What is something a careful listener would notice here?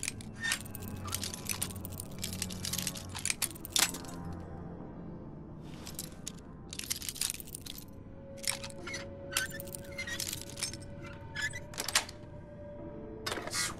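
A metal pin scrapes and clicks inside a lock.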